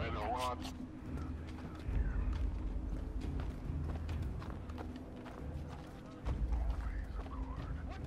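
Soft footsteps shuffle on a hard floor.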